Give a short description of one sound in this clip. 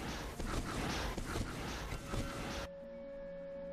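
Magic spells whoosh and crackle in quick bursts.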